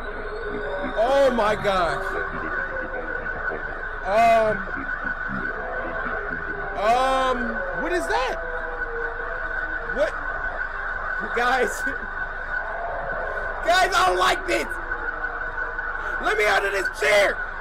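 A young man yelps and shouts in fright through a microphone.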